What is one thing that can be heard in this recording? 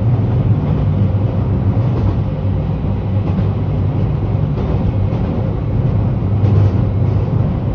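A train rumbles steadily along the tracks at speed.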